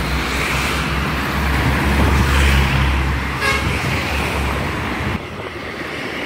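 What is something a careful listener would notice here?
Cars drive by on an asphalt road.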